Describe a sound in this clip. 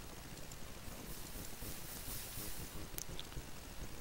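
Water pours and splashes briefly.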